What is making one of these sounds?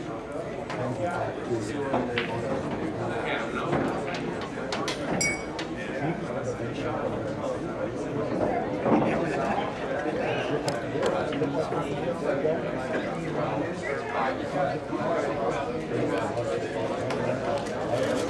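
Billiard balls click against each other now and then.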